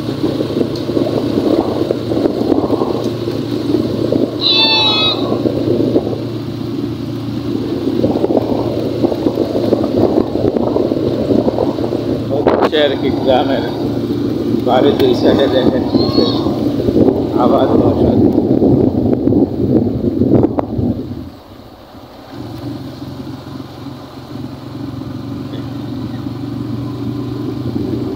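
A vehicle drives along a paved road.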